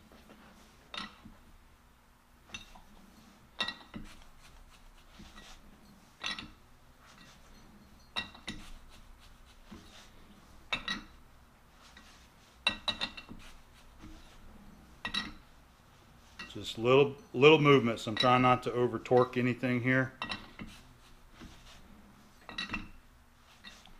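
A chuck key clicks and knocks against a metal lathe chuck.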